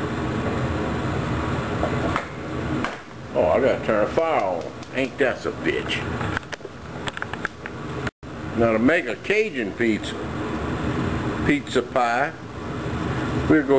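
Meat sizzles steadily in a frying pan.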